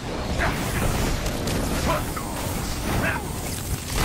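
Energy blasts zap and crackle.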